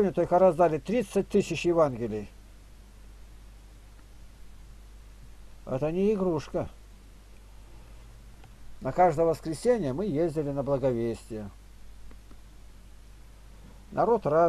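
An elderly man speaks calmly over an online call, in short bursts with pauses.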